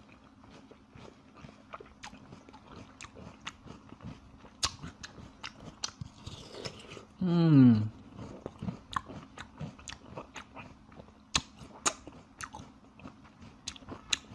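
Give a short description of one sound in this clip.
A man chews and smacks wet food close to a microphone.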